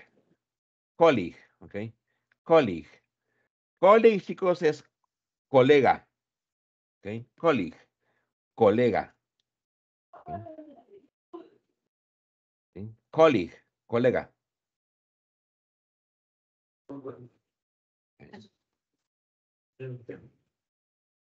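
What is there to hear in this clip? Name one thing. A man speaks slowly and clearly through an online call, with pauses.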